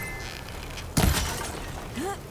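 An arrow is loosed from a bow with a sharp snap.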